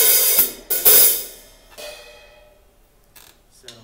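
Cymbals ring out and slowly fade.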